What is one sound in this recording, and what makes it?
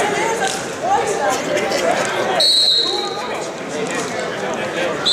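A crowd of people chatter and shout in a large echoing hall.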